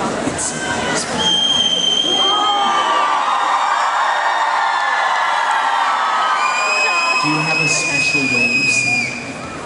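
A man speaks into a microphone, heard through loudspeakers.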